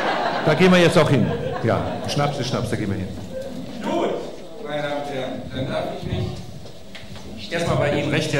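A middle-aged man speaks with animation through a microphone.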